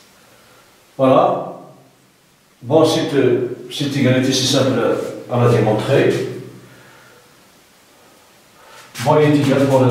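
An adult man speaks calmly and clearly, as if explaining a lesson, close by.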